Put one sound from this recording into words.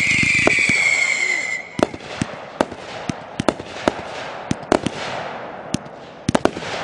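Fireworks bang and crackle in sharp bursts.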